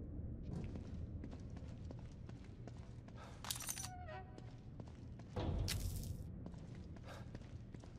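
Footsteps thud softly on a hard floor.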